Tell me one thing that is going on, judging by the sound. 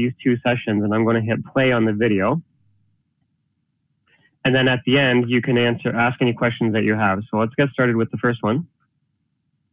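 A man talks calmly and clearly into a close microphone.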